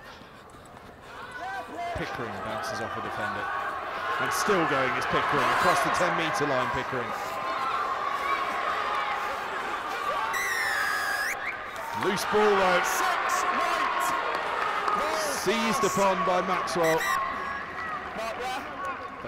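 A crowd cheers and murmurs in the distance.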